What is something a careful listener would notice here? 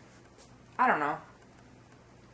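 A young woman says a short word close to a microphone.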